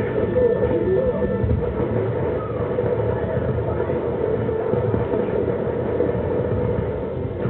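A heavy vehicle engine rumbles steadily, heard through a television speaker.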